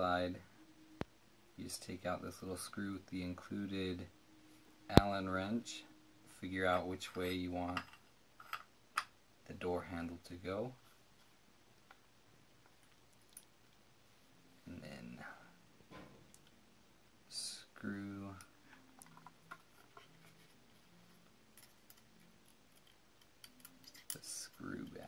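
Metal lock parts click together.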